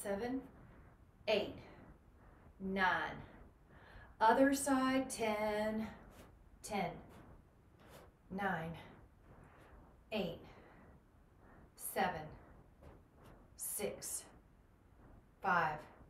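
A young woman speaks calmly and clearly, giving instructions in short phrases.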